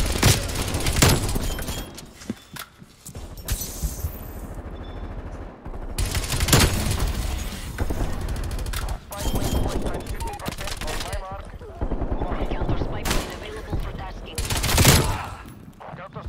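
Rapid gunshots crack out in short bursts.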